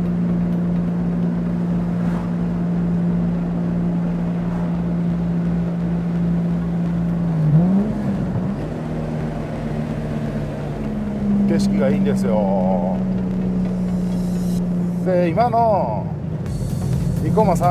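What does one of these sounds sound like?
A car engine hums steadily from inside the car, briefly dropping and rising in pitch at a gear change.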